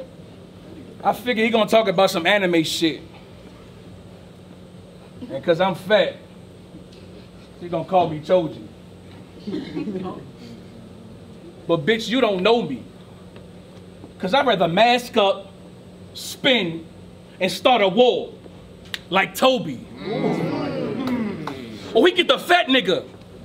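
A young man raps loudly in short, forceful bursts.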